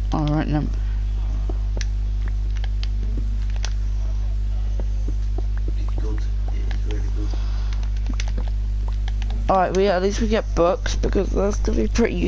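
Blocks in a video game crack and break with quick, dry clicks.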